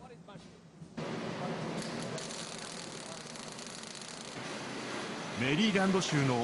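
A grinder grinds metal with a harsh, steady hiss.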